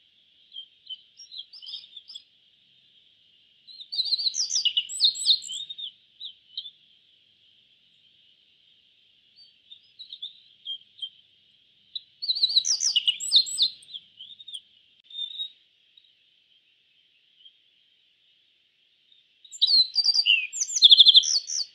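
A small bird sings in bursts of bright, quick chirps and trills.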